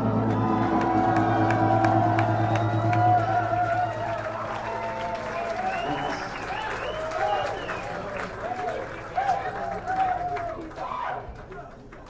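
Electric guitars ring out in a large room and slowly fade away.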